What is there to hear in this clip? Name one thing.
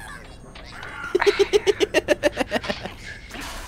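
A small robot chirps in rapid, warbling electronic bleeps.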